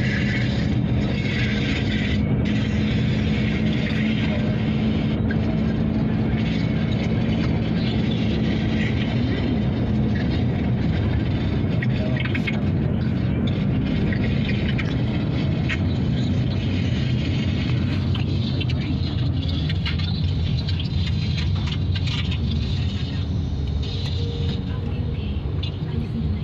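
A car engine hums steadily from inside the car.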